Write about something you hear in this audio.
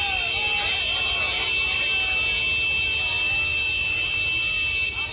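A crowd of young men cheers and shouts loudly outdoors.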